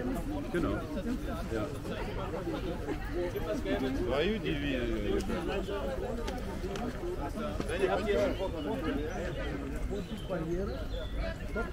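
Footsteps of many people shuffle on a paved path.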